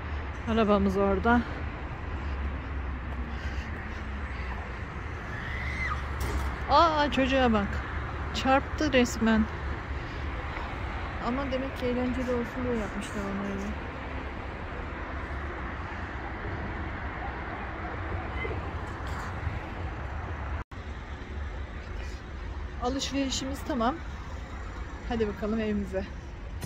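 A middle-aged woman talks calmly, close by, outdoors.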